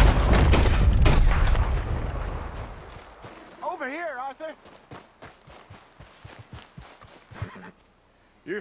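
Footsteps run quickly over grass and stone.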